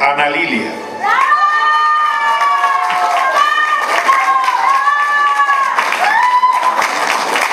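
People in a crowd cheer and whoop.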